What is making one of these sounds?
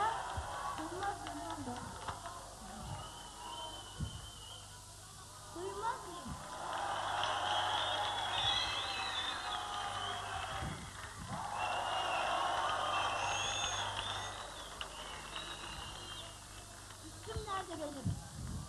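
A woman talks with animation through a headset microphone over loudspeakers.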